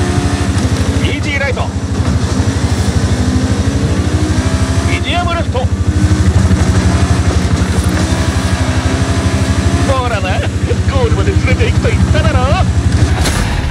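Tyres squeal in drifts through corners.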